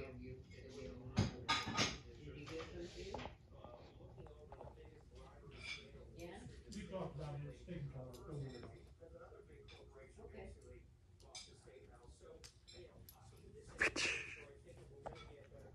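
A dog's paws pad softly across a carpet.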